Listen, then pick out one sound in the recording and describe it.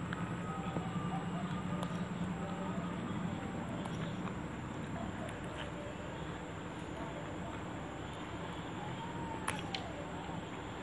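Fresh leaves rustle and snap as they are torn.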